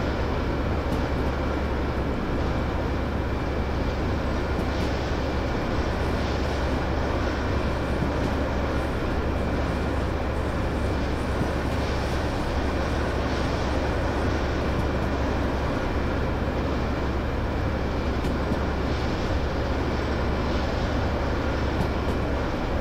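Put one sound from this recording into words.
A diesel locomotive engine rumbles steadily from inside the cab.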